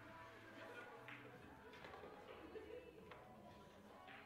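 Billiard balls clack against each other and roll across the table.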